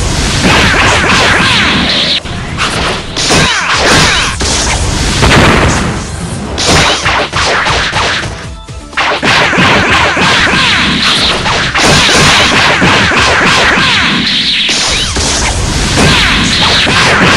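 Energy blasts crackle and whoosh as fighters trade blows.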